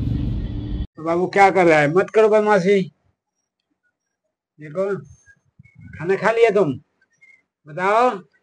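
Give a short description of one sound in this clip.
A man speaks close by with animation, in short bursts.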